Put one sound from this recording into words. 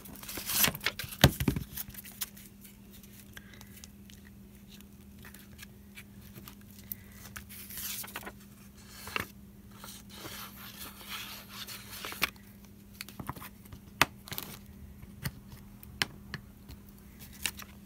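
Paper rustles and slides on a table.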